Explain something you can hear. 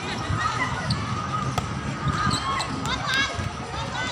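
A volleyball is struck with a hand with a dull thump.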